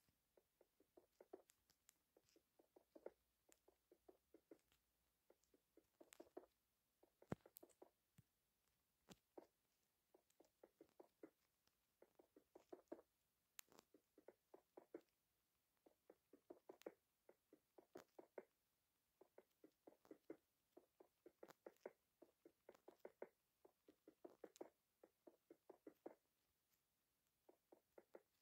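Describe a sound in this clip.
Stone blocks are placed one after another with short, dull knocks.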